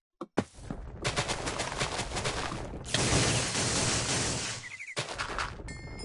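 A magic wand crackles and hisses as it fires a beam.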